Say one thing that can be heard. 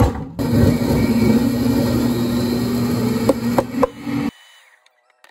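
A squeeze bottle squirts and sputters thick syrup.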